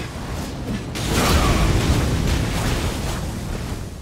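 Flames roar in a burst.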